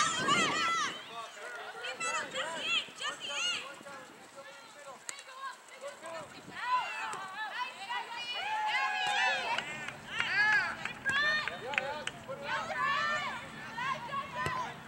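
Young women shout to each other across an open field, far off.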